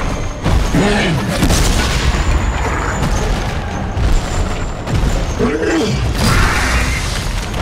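A large beast growls and roars deeply.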